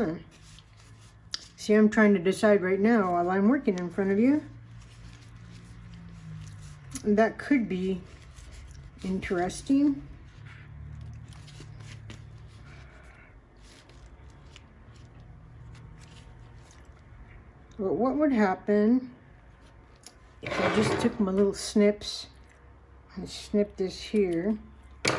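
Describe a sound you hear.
Paper and fabric pages rustle softly as they are handled and turned.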